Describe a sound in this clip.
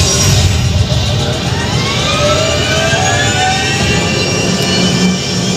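Gliding electronic tones sweep through loudspeakers.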